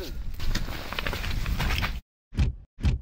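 A plastic sled thumps and scrapes onto the snow.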